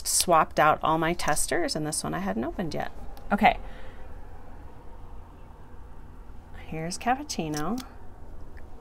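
A woman talks calmly and close up.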